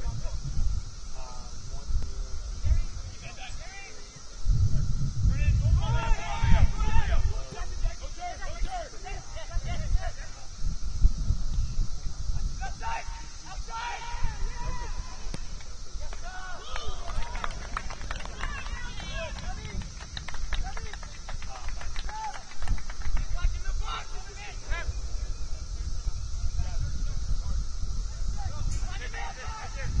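Young men shout and call out to each other at a distance, outdoors.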